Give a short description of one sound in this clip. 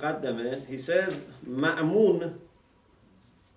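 A middle-aged man speaks calmly and closely.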